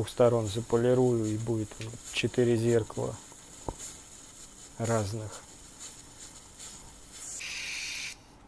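A sparkler fizzes and crackles sharply.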